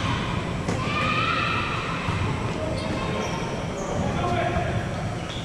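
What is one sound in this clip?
Young men call out to each other in a large echoing gym.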